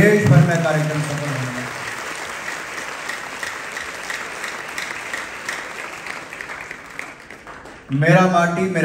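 An audience applauds steadily and then fades.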